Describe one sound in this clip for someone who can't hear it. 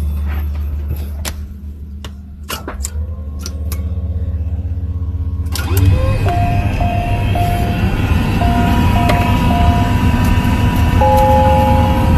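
Switches click as they are flipped on a control panel.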